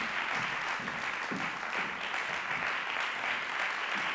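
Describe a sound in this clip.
High heels click on a wooden stage.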